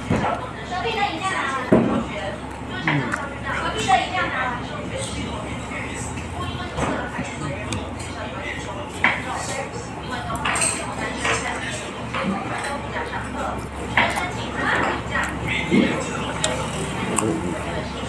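A man chews food and slurps noisily.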